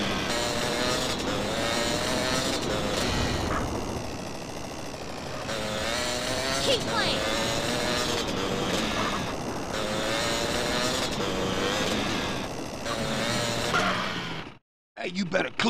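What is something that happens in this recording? A motorbike engine revs and drones steadily.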